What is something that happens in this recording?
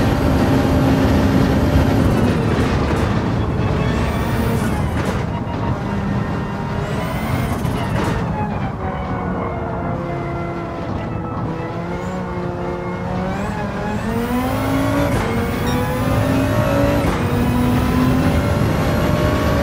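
A racing car engine roars loudly, its pitch falling as it slows for a bend and climbing again as it speeds up.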